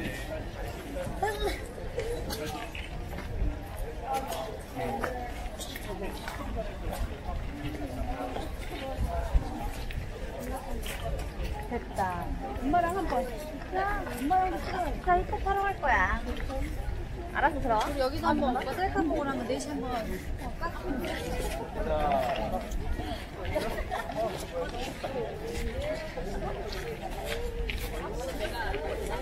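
Footsteps shuffle on stone paving.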